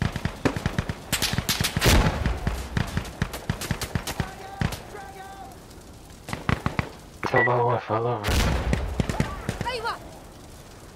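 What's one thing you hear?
Gunfire cracks in rapid bursts, close and loud.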